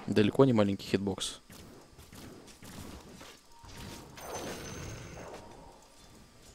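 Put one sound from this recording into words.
Game spells whoosh and crackle during a fight.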